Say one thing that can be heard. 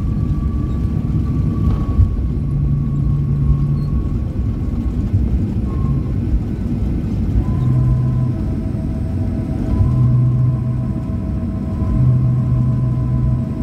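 A jet airliner rumbles loudly as it rolls fast down the runway.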